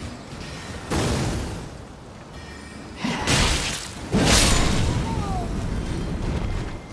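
A heavy weapon strikes with hard thuds.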